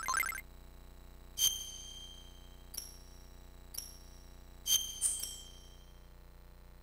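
Short electronic menu chimes ring out one after another.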